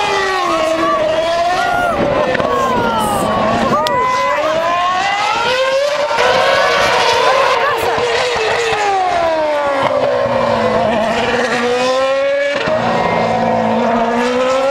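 A racing car engine screams and revs up and down, loud and close.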